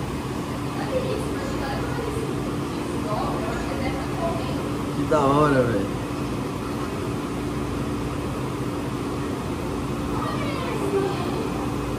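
A young woman talks quietly, muffled behind glass.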